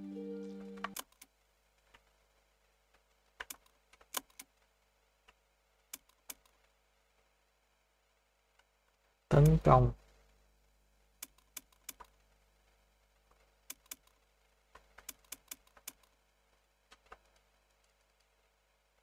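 Short, soft menu clicks tick now and then.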